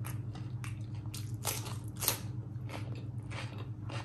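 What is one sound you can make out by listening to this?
Raw onion crunches between a woman's teeth.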